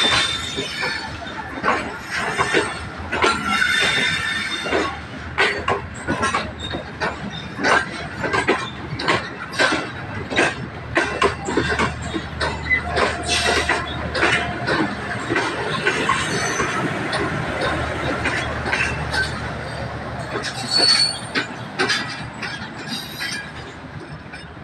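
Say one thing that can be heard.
A passenger train rolls past close by, wheels clacking rhythmically over rail joints.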